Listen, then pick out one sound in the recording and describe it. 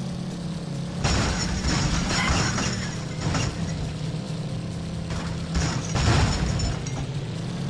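Tyres scrape and rumble over rough dirt.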